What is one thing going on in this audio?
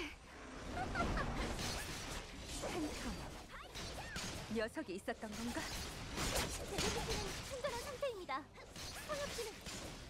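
Blades slash and whoosh in a fast fight.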